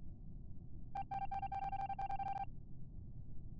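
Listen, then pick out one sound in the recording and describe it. Rapid electronic beeps tick out one after another.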